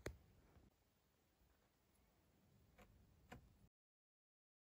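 Fingers click the buttons of a small plastic fidget toy.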